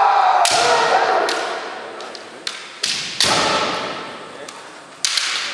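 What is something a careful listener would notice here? Fighters let out loud, drawn-out shouts in a large echoing hall.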